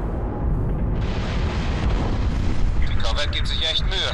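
A heavy metal door slides open with a mechanical whoosh.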